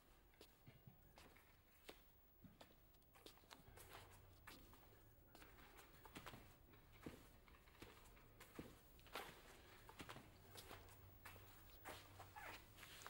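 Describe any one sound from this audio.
Footsteps tread softly across a floor.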